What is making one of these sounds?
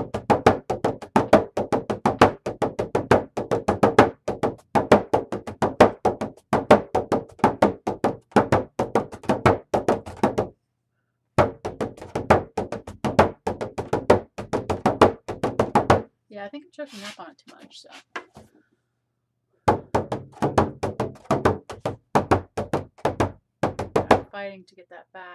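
A frame drum is beaten in a fast, steady rhythm with a beater.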